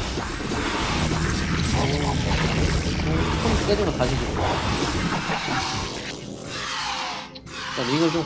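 Video game battle sounds crackle and clatter.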